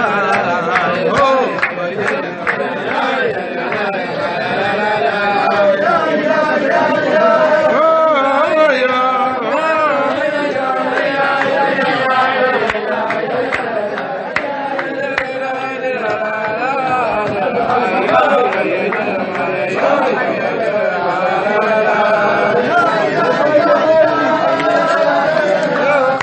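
A man sings steadily into a close microphone.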